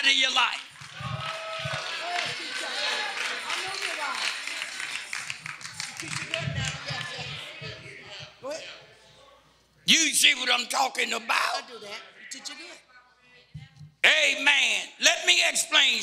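An elderly man speaks with animation into a microphone, heard over a loudspeaker in an echoing hall.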